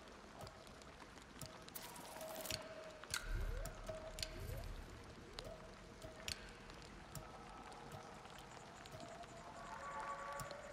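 Soft electronic menu clicks and chimes sound as selections change.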